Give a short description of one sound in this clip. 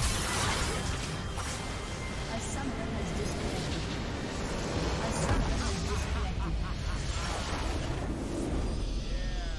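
Game spell effects crash and explode in a fierce battle.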